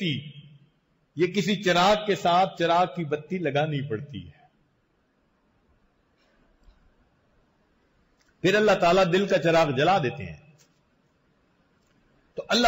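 An elderly man speaks slowly and earnestly into a close microphone, with long pauses.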